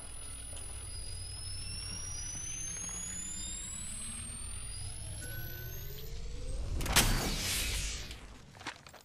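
An electric charging hum rises steadily in pitch and ends in a crackling burst.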